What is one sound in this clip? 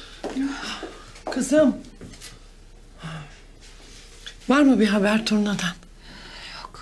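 A woman speaks anxiously, close by.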